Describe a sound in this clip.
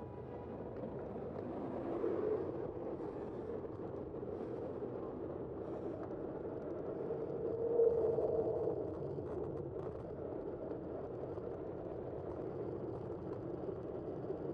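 A tram rumbles steadily along its rails.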